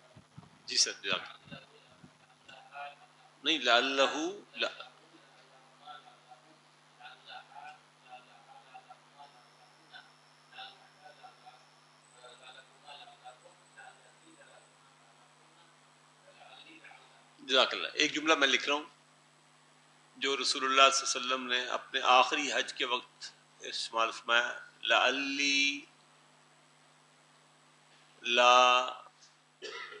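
An elderly man speaks calmly through a headset microphone, with pauses.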